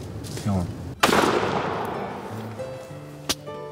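A shotgun fires once nearby, echoing through the woods.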